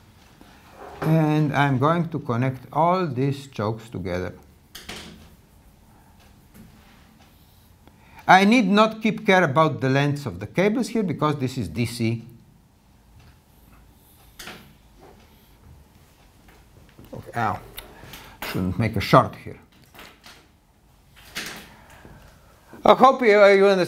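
An elderly man speaks calmly, explaining in pauses.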